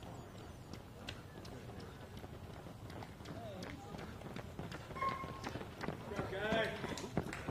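Runners' footsteps patter on pavement, growing louder as they approach.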